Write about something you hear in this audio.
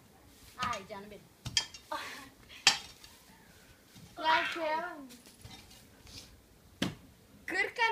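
A hoe scrapes and thuds into soil.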